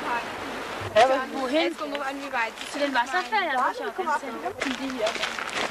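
Young women talk with animation nearby.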